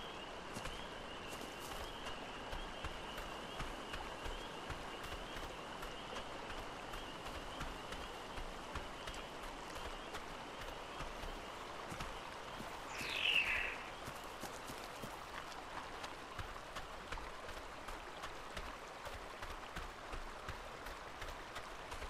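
Gentle waves lap at a shore.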